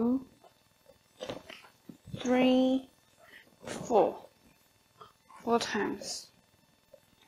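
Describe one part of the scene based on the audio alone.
A young woman speaks calmly and clearly, close by, with short pauses.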